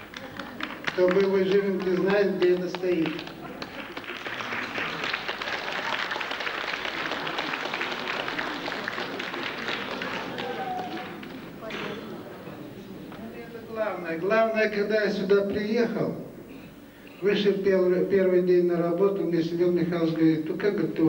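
A middle-aged man sings into a microphone over a loudspeaker.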